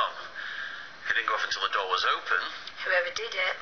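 A young man speaks quietly, heard through a television speaker.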